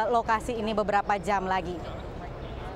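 A young woman speaks clearly into a microphone, close up.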